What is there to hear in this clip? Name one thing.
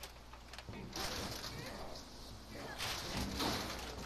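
Wooden boards creak and scrape as they are pulled loose.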